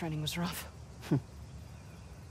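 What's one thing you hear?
A woman grunts briefly.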